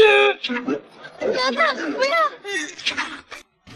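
A young woman cries out in alarm.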